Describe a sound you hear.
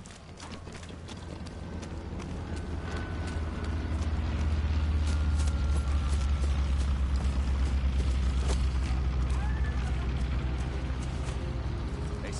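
Aircraft engines drone low and steady, growing louder.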